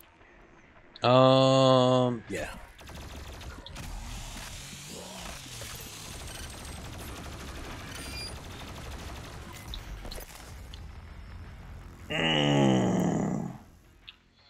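A man shouts loudly into a close microphone.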